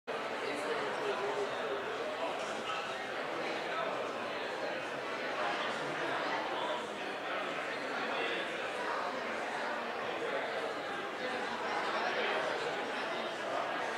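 A crowd of people chatters and murmurs in a large room.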